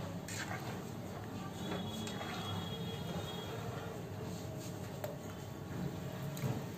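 A metal spoon stirs a thick liquid in a pot.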